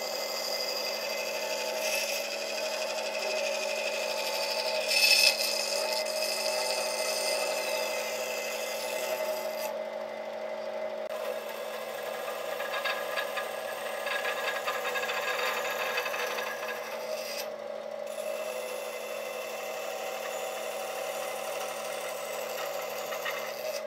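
A band saw hums steadily and whines as it cuts through wood.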